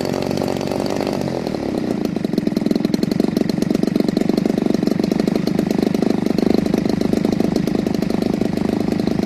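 A small model aircraft engine runs with a loud, rapid buzzing drone, dropping in pitch early on and then holding steady.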